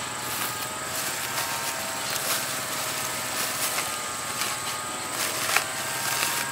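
A plastic mesh sack rustles as it is shaken out.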